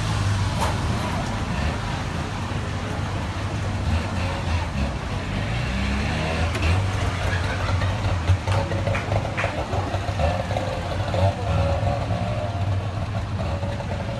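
Voices of a crowd chatter around outdoors.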